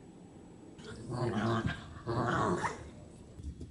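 Two small dogs growl and yip as they play.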